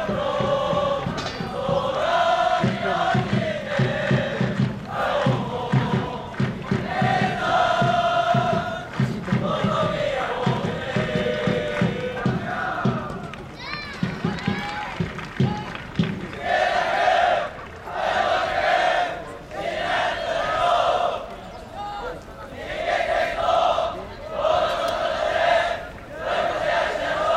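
A large group of young men chant and shout in unison outdoors, at a distance.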